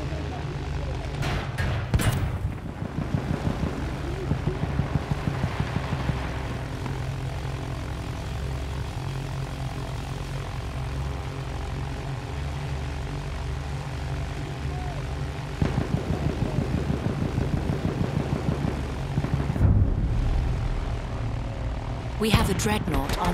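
An airship's engines drone steadily overhead.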